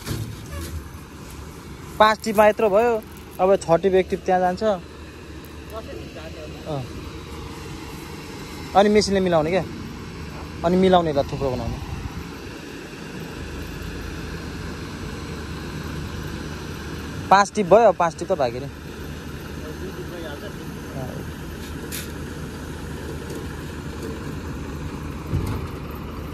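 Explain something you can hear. A truck engine idles steadily nearby.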